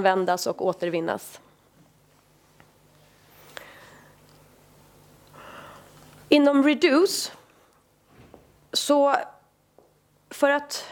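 A woman speaks calmly into a microphone, pausing between phrases.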